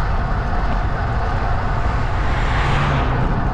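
A car approaches and passes close by.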